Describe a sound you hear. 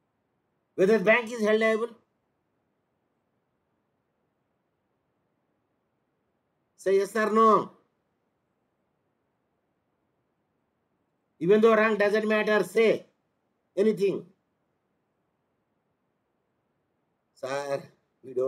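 An elderly man speaks calmly in short phrases into a microphone, with pauses between them.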